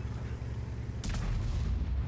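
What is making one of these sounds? A shell explodes with a loud blast.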